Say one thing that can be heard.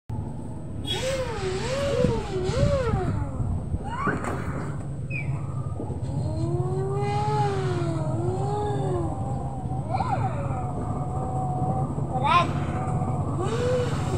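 A toddler babbles and squeals up close.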